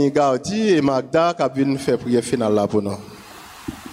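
A man speaks with animation through a microphone in an echoing room.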